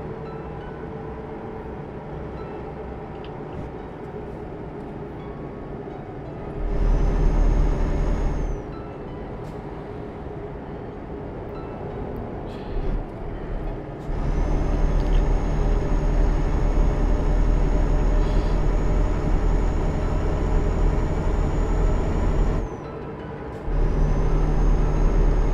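A truck engine hums steadily, growing louder at times.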